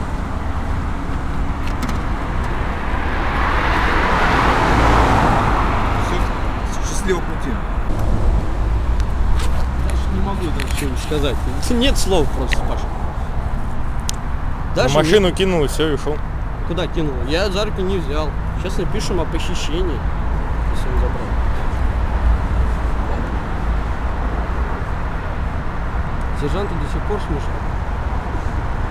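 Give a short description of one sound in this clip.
Traffic rumbles past steadily.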